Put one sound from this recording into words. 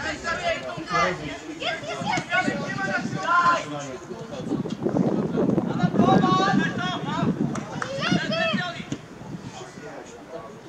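Children shout and call out to each other across an open field.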